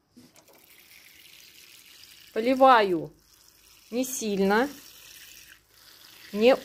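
Water pours from a watering can onto soil.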